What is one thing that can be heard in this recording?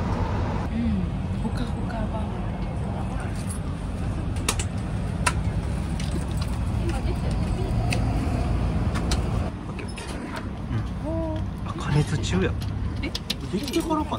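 A vending machine hums steadily close by.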